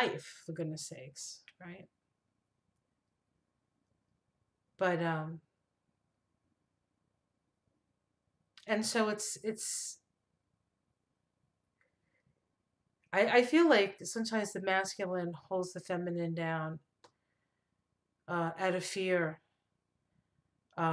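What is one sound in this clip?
A middle-aged woman talks calmly and closely into a microphone, in bursts with pauses.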